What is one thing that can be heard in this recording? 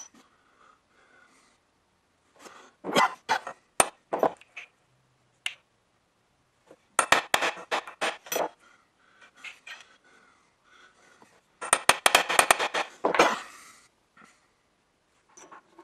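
Small metal parts clink against a steel block.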